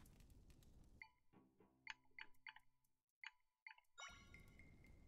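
Short chiming blips sound as a game menu cursor moves from item to item.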